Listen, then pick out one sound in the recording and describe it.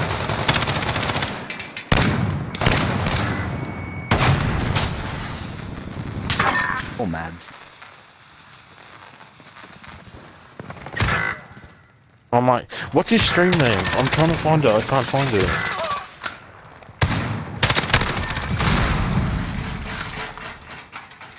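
Rapid gunshots crack close by.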